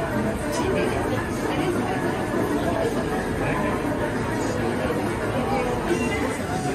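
Several people murmur and talk nearby in a busy room.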